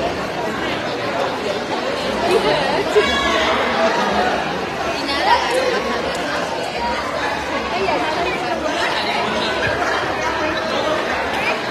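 A crowd of people chatters and shouts close by, in a busy echoing hall.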